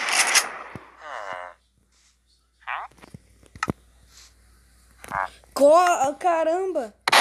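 A cartoonish creature grunts with short, nasal murmurs.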